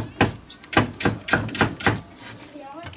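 A knife chops rapidly on a wooden board.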